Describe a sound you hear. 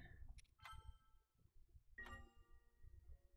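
A game menu gives soft chiming beeps.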